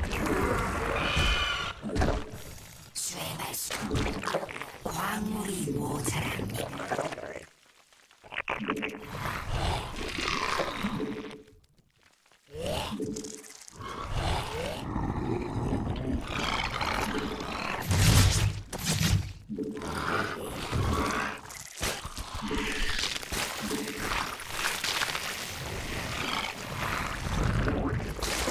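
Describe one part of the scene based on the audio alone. A young man talks into a headset microphone.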